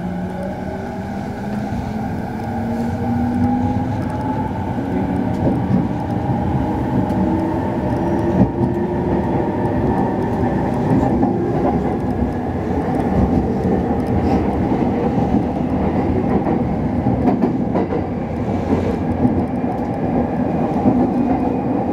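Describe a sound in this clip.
Steel wheels of an electric commuter train rumble and clatter over rail joints.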